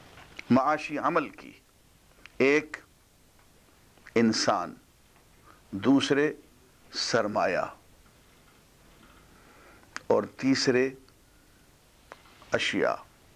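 An elderly man speaks calmly into a microphone, in short phrases with pauses.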